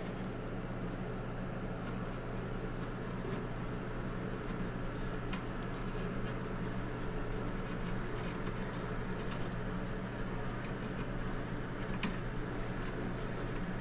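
Wires rustle and scrape softly as fingers twist them together.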